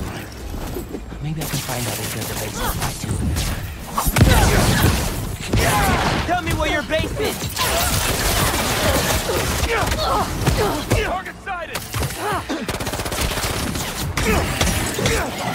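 Punches and blows land with heavy thuds and crackling bursts.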